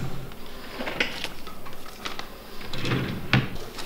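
A drawer rattles as it is pulled open.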